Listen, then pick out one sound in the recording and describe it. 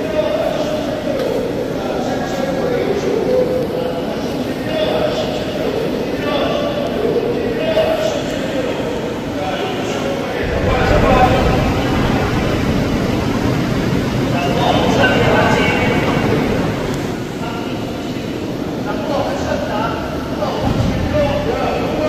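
Water splashes and gurgles steadily through tanks.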